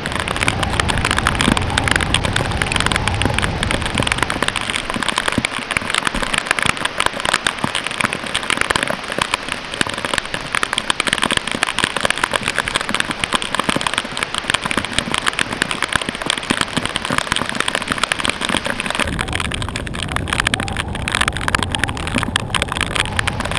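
Rain and sea spray patter hard on a boat's deck.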